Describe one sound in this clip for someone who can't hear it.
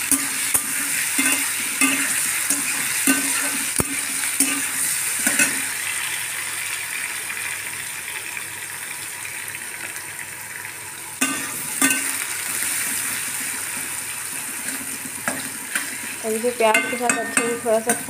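A spatula scrapes and clatters against a metal pan.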